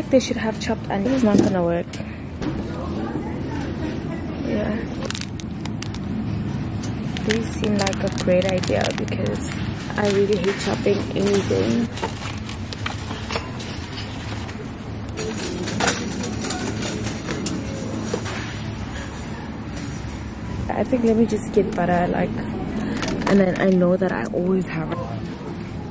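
A young woman talks casually, close to the microphone.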